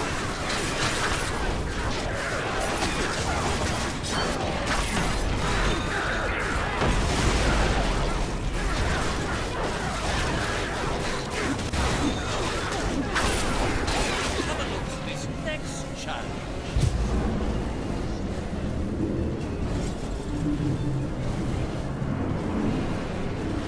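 Video game combat clashes with weapon hits and spell effects.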